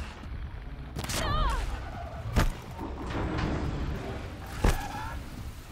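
Heavy thuds sound as a climber grips the rock.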